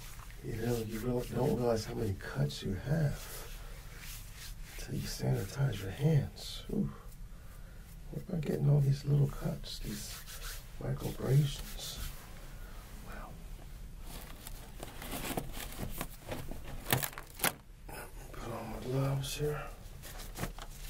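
A man speaks softly and slowly, very close to a microphone.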